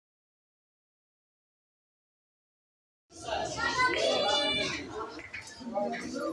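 A cue ball clicks against another ball.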